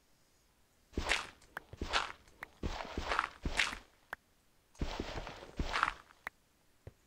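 A shovel digs into dirt in scraping bursts.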